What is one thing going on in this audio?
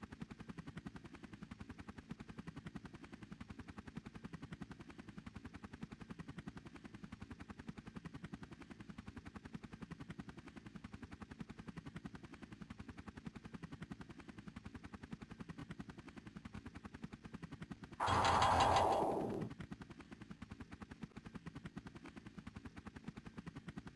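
A helicopter's rotor chops steadily.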